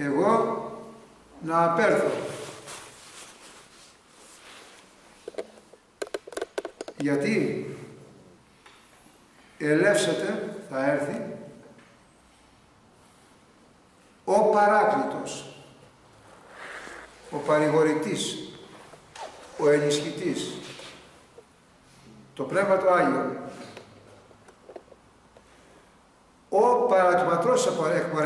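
An elderly man speaks calmly and thoughtfully, close by, pausing between phrases.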